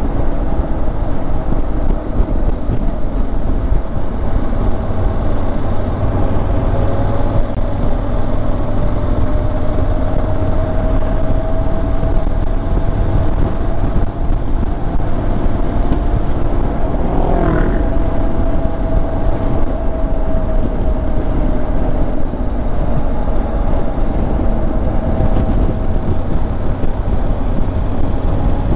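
A motorcycle engine hums steadily while riding along.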